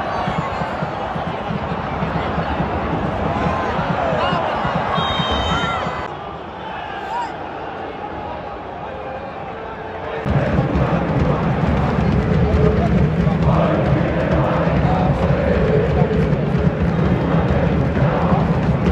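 A large stadium crowd chants and roars loudly outdoors.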